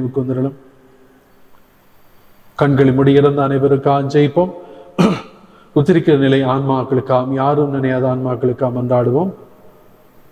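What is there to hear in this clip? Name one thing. An elderly man chants in a sung voice through a microphone.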